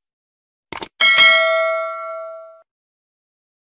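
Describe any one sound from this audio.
A small bell rings brightly and fades away.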